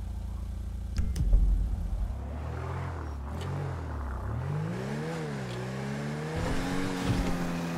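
A car engine revs up and speeds away.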